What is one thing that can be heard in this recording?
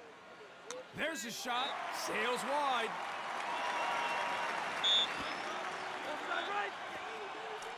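A crowd cheers loudly in a large stadium.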